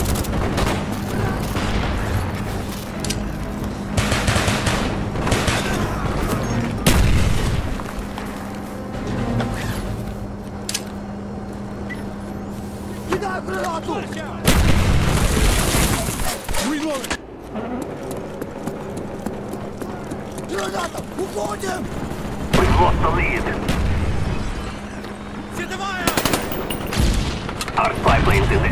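Automatic gunfire rattles in short bursts.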